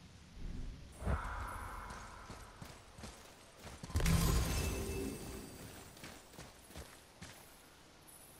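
Footsteps crunch through grass and over stones.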